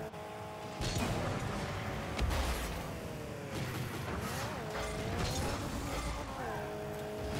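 A game car engine hums and revs, rising and falling in pitch.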